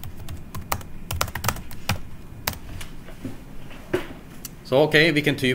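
Keys click on a keyboard as someone types.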